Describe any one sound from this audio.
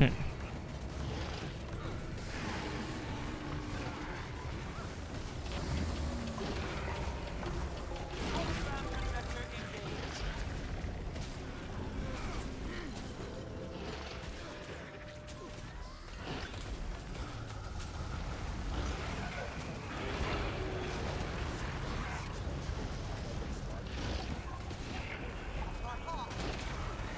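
Game combat effects crackle and boom.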